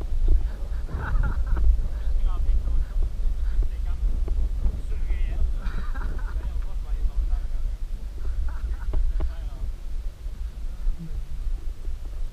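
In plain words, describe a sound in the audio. Wind rumbles loudly outdoors.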